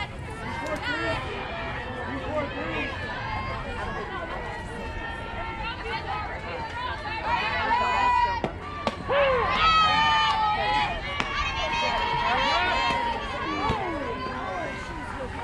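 Spectators nearby shout and cheer.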